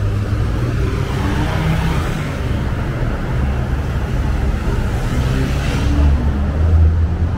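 Cars drive past on a nearby street.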